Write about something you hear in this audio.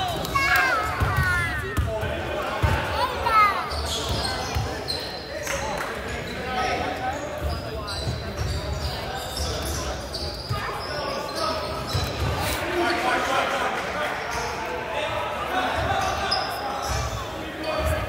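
Spectators chatter and call out nearby.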